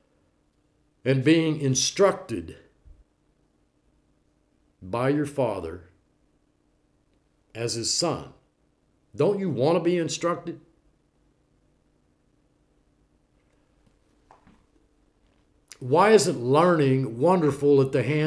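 An older man speaks calmly and with expression close to a microphone, pausing between phrases.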